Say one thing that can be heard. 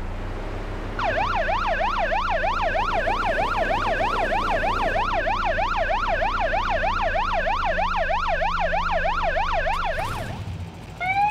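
A police siren yelps rapidly up and down.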